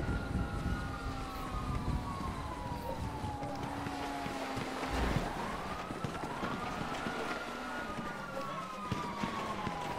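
Footsteps run across dry ground.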